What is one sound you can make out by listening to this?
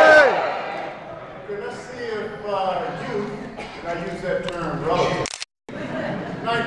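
A man speaks to an audience through a microphone in a large hall.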